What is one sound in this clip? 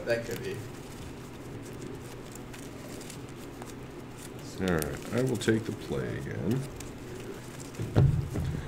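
Playing cards rustle as they are shuffled.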